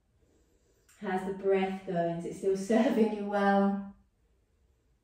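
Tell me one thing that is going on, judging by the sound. A woman speaks calmly and softly.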